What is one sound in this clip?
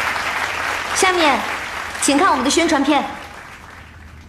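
A young woman speaks into a microphone, heard over loudspeakers.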